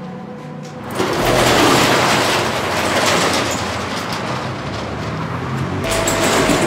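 A metal roller shutter rattles as it is pushed open.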